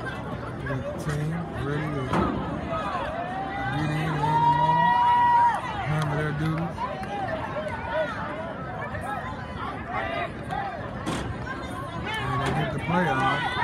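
Young players shout and chant together loudly nearby.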